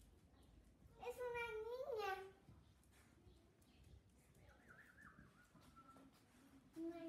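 A puppy yelps and whines in a high voice.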